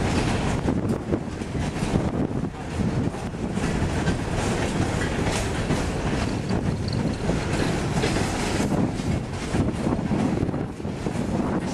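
A freight train rumbles past with wheels clattering on the rails.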